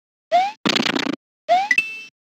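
Bricks shatter with a crumbling crash.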